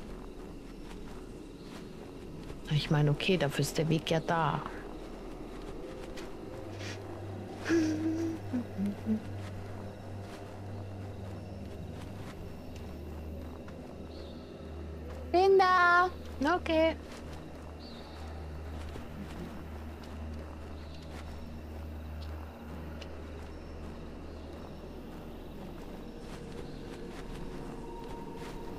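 Footsteps crunch on gravel and dry grass.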